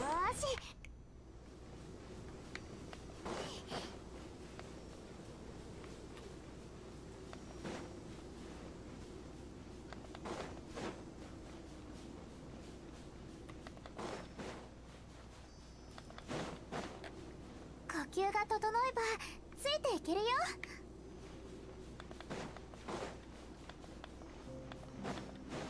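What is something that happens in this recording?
Footsteps run across soft sand.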